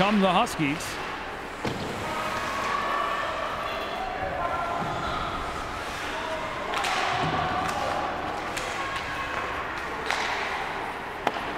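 A crowd murmurs and calls out in a large echoing rink.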